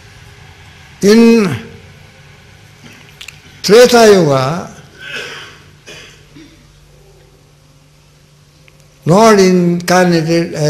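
An elderly man speaks slowly into a microphone in short, drawn-out phrases, with pauses between them.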